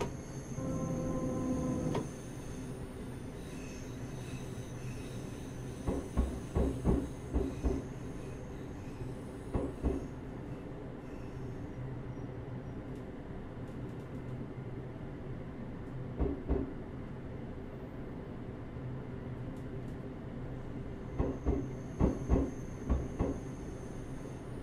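A train engine hums steadily as the train rolls along.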